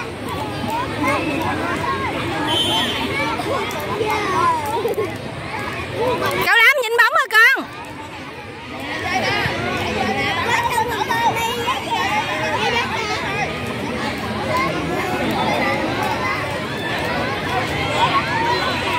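Young people shout and cheer from the sidelines outdoors.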